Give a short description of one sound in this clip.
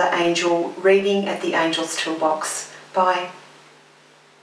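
A middle-aged woman speaks calmly and warmly into a nearby microphone.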